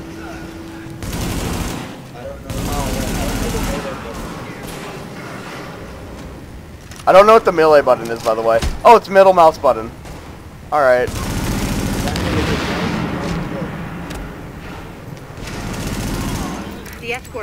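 Automatic gunfire rattles in bursts.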